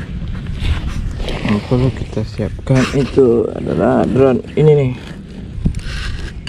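Backpack fabric rustles as hands handle it.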